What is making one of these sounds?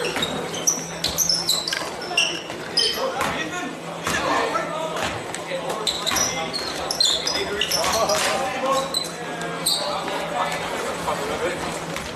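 A crowd of players and spectators shouts and chatters in an echoing gym.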